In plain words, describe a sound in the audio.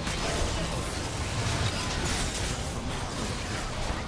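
Game spell effects whoosh and burst in quick bursts.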